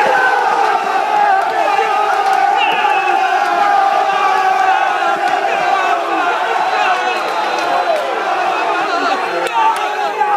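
A large stadium crowd sings and chants loudly all around.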